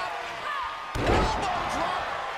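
A heavy body slams down onto a wrestling ring mat with a loud thud.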